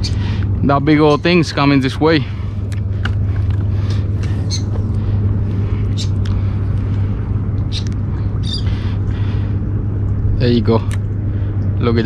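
A fishing reel clicks and whirs as the line is wound in.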